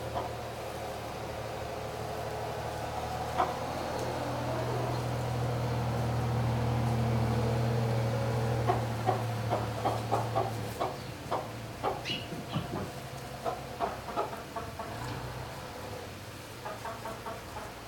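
Chickens scratch and rustle in dry straw.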